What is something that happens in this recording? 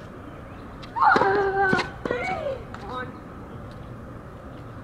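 A tennis racket strikes a ball.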